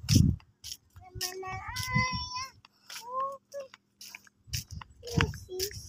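A young girl's high voice calls and sings out close by.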